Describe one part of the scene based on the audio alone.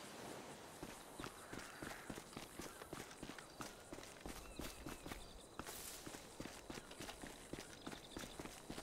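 Quick footsteps run over dirt and grass.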